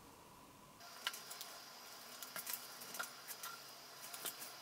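A plastic spatula scrapes and taps against a small tray.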